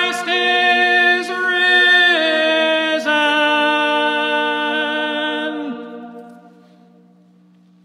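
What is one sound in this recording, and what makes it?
A man chants in a long, sustained voice that rings on in a large echoing hall.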